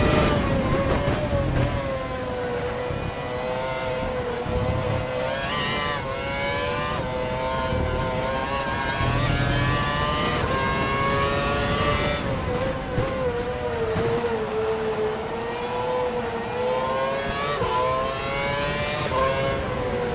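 A racing car engine whines loudly, its pitch rising and dropping as it shifts gears.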